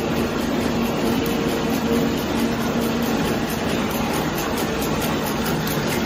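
A machine hums and rattles steadily.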